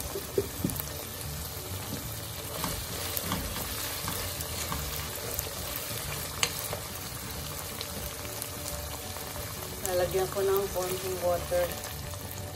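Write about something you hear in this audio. Minced meat sizzles steadily in a pan.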